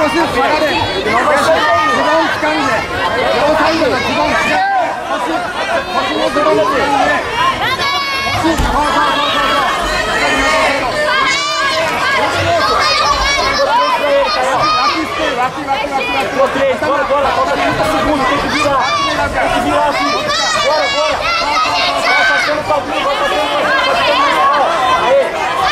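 A crowd of spectators shouts and calls out in a large echoing hall.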